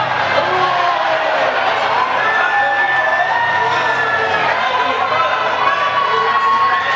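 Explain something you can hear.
A large crowd of young people chants and cheers loudly.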